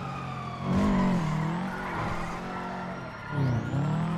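Tyres skid and screech on the road.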